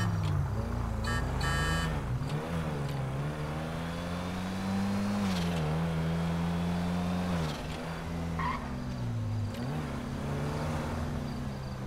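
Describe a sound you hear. A car engine hums steadily, its pitch rising and falling as the car speeds up and slows down.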